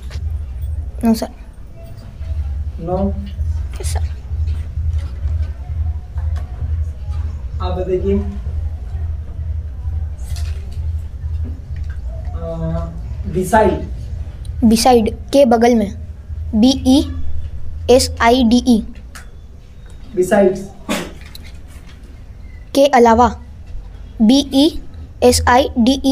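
A young boy speaks calmly and close by.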